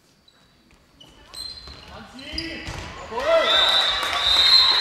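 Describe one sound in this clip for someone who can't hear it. A crowd cheers loudly in an echoing hall.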